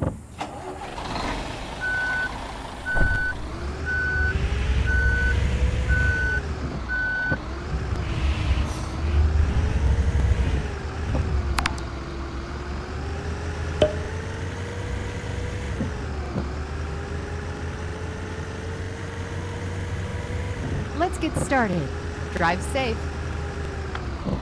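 A bus engine hums and rises and falls in pitch as it drives.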